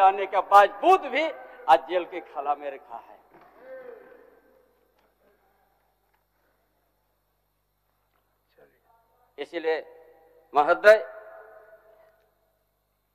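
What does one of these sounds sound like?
An elderly man speaks forcefully into a microphone in a large hall.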